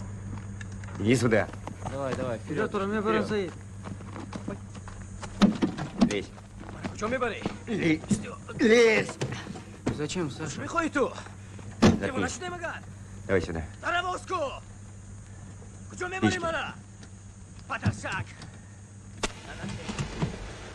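Men talk and call out outdoors with tense voices.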